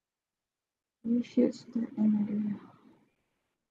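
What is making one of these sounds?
A middle-aged woman speaks calmly through an online call.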